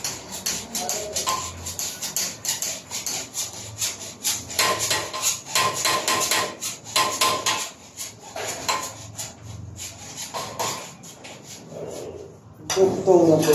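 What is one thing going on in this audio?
Cables rustle and tap as they are handled.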